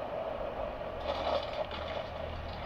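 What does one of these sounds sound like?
A treasure chest in a video game clicks open with a bright chime.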